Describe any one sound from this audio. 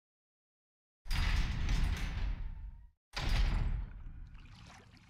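Heavy metal doors grind and rumble open.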